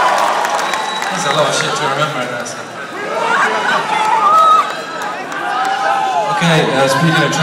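A man sings through loudspeakers.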